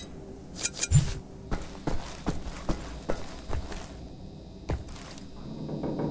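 Throwing knives thunk into a wooden target.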